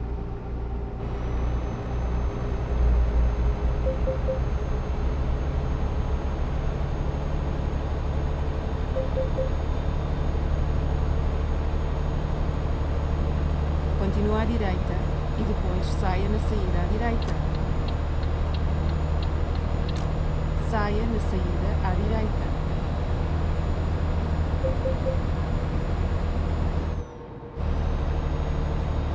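A truck engine drones steadily as the truck drives along a highway.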